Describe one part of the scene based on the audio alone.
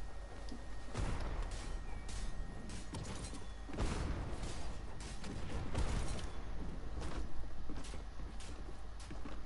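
A pickaxe swings and strikes in a video game.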